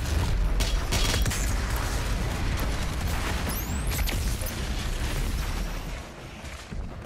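Heavy gunfire booms in rapid bursts.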